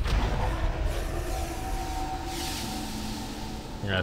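A magic spell hums and shimmers.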